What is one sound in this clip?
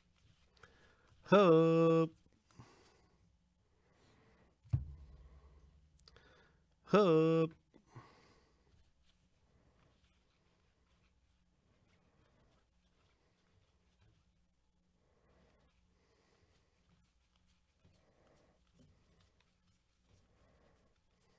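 Trading cards slide and flick against each other as they are flipped through.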